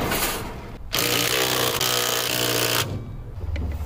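An electric impact wrench whirs, loosening wheel nuts.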